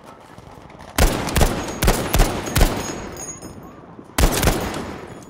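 Rapid gunshots crack in loud bursts.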